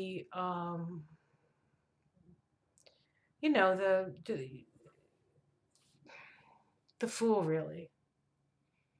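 A middle-aged woman speaks slowly and softly close to a microphone, with long pauses.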